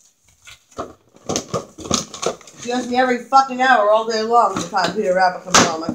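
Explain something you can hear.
A plastic container crackles as it is handled.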